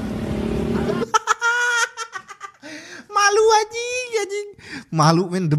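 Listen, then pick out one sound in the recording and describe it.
A young man laughs loudly close to a microphone.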